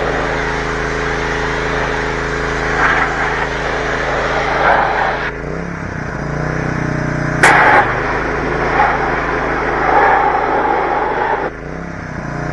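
A pressure washer sprays water with a loud hiss.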